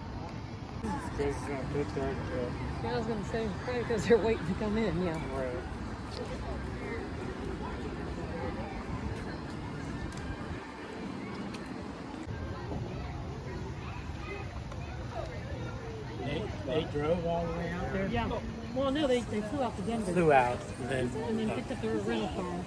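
Men and women talk casually nearby outdoors.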